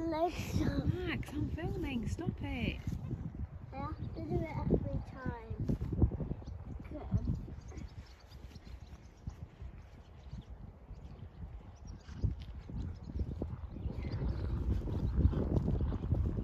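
A horse canters across grass with soft, distant hoof thuds.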